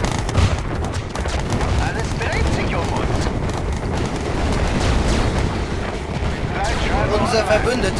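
Explosions and gunfire rumble and crack in a game battle.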